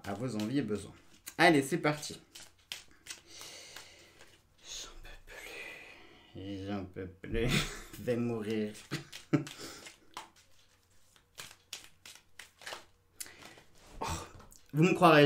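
Cards shuffle and slap in a man's hands.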